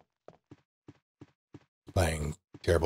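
Footsteps tap steadily on wooden stairs.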